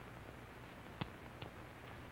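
A cigarette lighter clicks.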